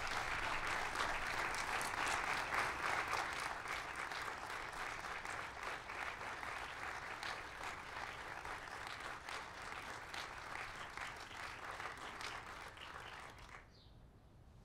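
A large crowd applauds outdoors, then the clapping stops abruptly.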